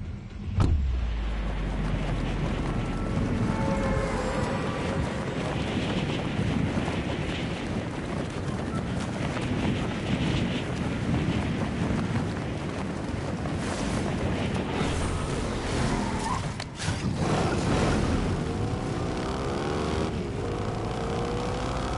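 Wind rushes loudly and steadily during a high-speed fall.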